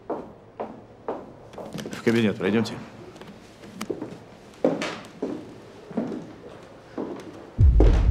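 A man speaks quietly and firmly, close by.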